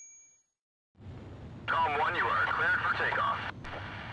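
A jet engine hums steadily.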